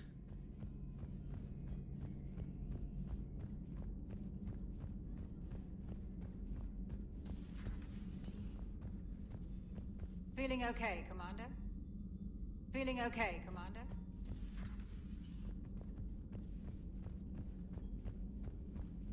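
Footsteps clank steadily on a metal floor.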